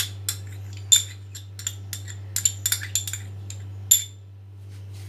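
Light clicks and taps sound against a glass bowl.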